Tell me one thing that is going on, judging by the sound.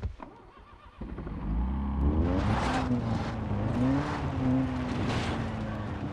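A car engine starts and revs up.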